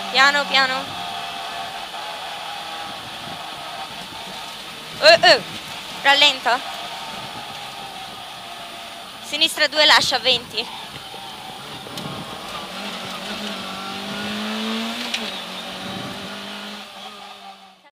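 A rally car engine roars and revs steadily.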